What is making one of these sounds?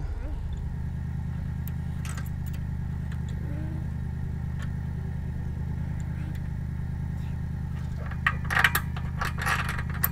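Metal parts of a trailer hitch clank and rattle.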